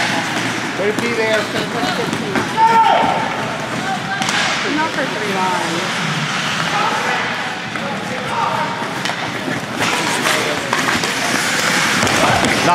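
Hockey sticks clack against a puck and each other.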